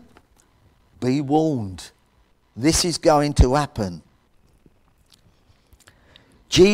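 An elderly man speaks with emphasis through a microphone, in short bursts with pauses.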